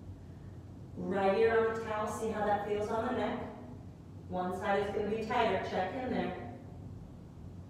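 A woman speaks calmly and softly, close to the microphone.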